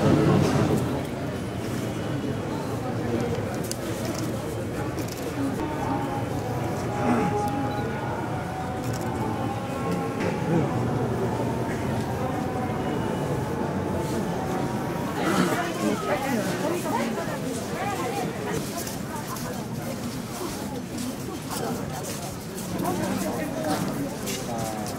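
A crowd murmurs and chatters all around, outdoors.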